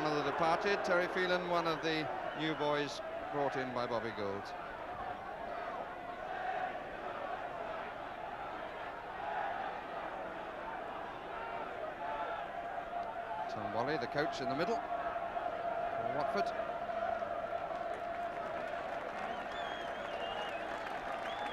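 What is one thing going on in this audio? A large crowd murmurs steadily outdoors.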